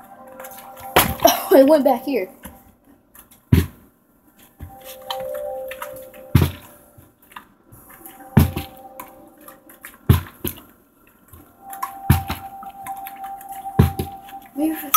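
A plastic bottle repeatedly drops and thumps onto a carpeted floor.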